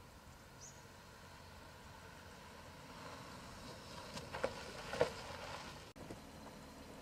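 A car engine hums as a car drives up and stops.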